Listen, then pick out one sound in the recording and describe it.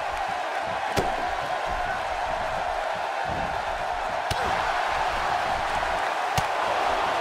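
Bodies thud against each other in a scuffle.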